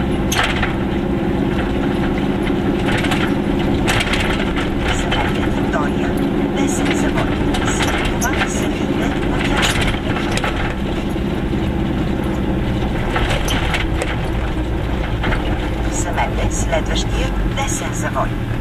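Tyres rumble over a rough road surface.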